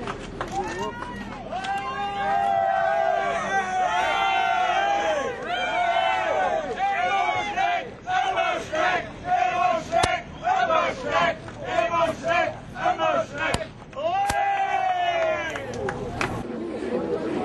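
A crowd sings and cheers loudly outdoors.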